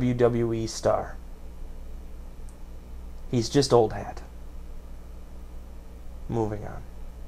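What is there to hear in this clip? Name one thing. A young man speaks calmly close to a microphone, in short bursts.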